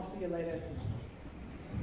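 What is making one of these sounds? A woman speaks briefly on a stage in a large echoing hall.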